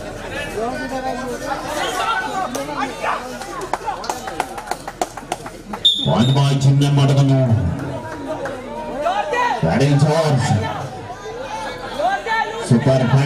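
A large crowd shouts and cheers in an echoing hall.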